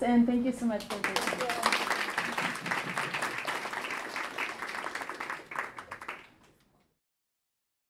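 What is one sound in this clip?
An audience applauds and then fades away.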